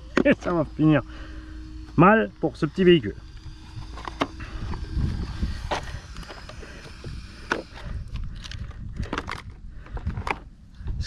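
Plastic parts of a toy car click and rattle as hands handle it.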